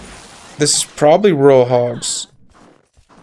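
A young man speaks loudly with animation through a close microphone.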